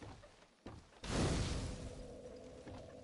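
A bonfire flares up with a loud whoosh.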